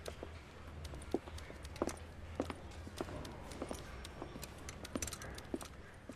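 Hard-soled shoes step across a floor.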